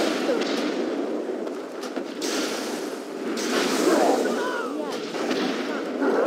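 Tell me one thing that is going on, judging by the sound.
Magic spells crackle and blast in quick bursts.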